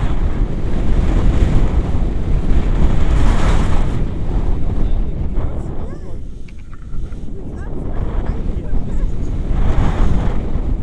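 Strong wind buffets and roars past the microphone, easing briefly before gusting up again.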